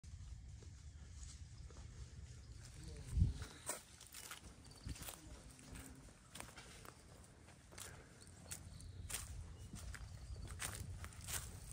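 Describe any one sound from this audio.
Footsteps crunch on dry stalks and leaves.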